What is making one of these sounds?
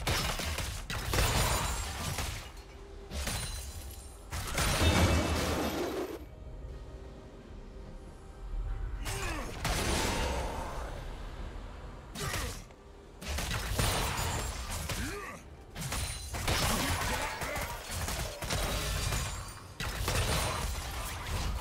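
Fantasy combat effects whoosh, crackle and clash.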